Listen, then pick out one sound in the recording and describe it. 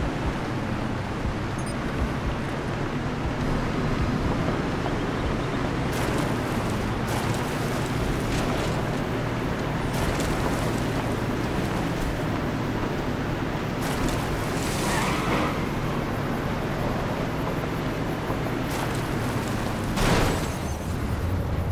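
An engine hums steadily as a jeep drives along a rough track.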